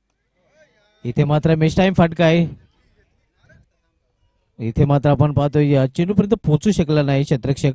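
A man commentates excitedly over a microphone.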